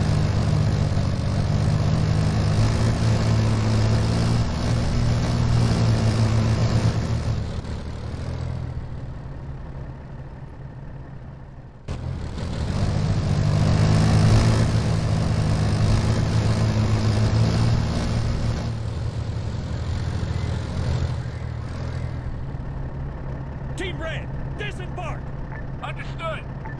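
A heavy vehicle engine rumbles steadily, rising and falling in loudness.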